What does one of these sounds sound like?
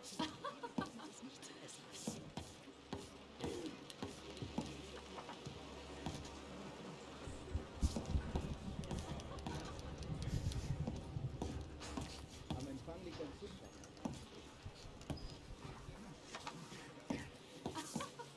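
Footsteps thud slowly on a wooden floor indoors.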